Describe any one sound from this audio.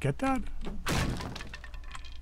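A bat smashes into splintering wood with a sharp crack.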